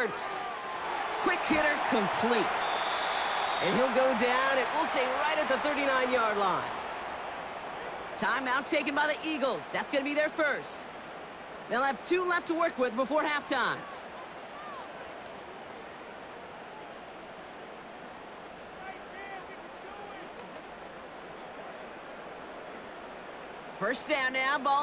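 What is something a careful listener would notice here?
A large stadium crowd cheers loudly, then settles into a steady murmur.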